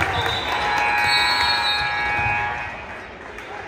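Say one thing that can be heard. A loud buzzer sounds.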